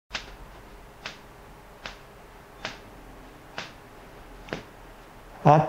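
A cane taps on a hard floor at a steady pace.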